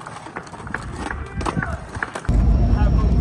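A skateboard clatters and slaps on asphalt.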